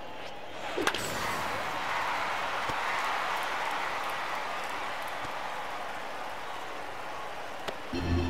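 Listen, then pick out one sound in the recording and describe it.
A stadium crowd cheers.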